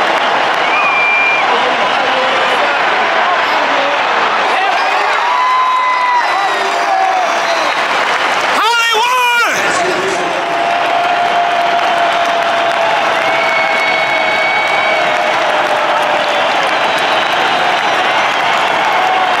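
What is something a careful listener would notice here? Fans nearby shout and cheer.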